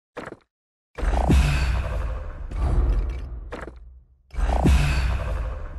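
A deep magical whoosh swells and rumbles, then swells again.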